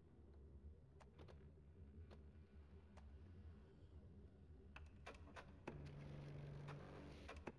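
Keys click on a keyboard in short bursts.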